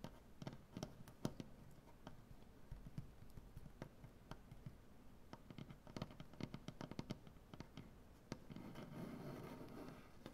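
Fingertips scratch and rub softly on wood.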